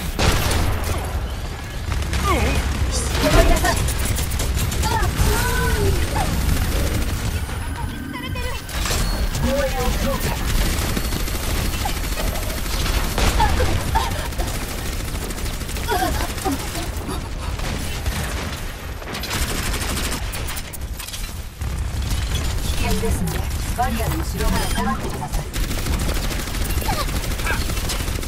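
A weapon fires rapid bursts of shots.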